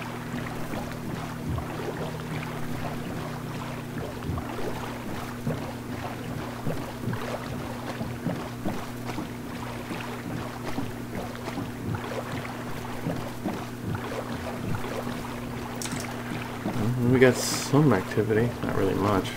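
Oars splash in water as a rowing boat is rowed.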